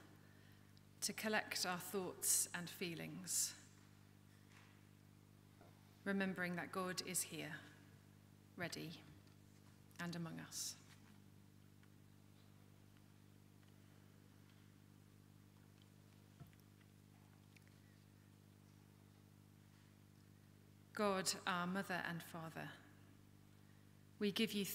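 A woman reads aloud calmly into a microphone, with pauses, in an echoing room.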